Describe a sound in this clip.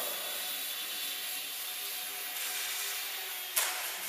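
A model plane bumps down onto a wooden floor.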